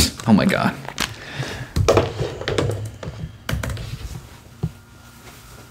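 Headphones and a chair knock and rustle as a young man gets up.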